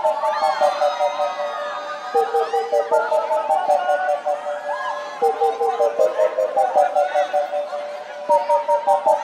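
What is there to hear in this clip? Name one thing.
Loud electronic dance music plays with a pulsing beat and a bright synth melody.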